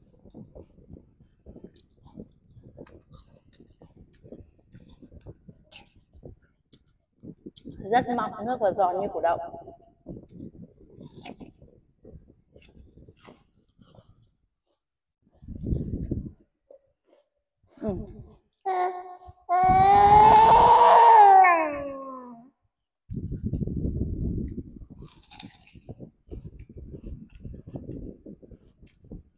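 A young woman chews and munches on fruit close by.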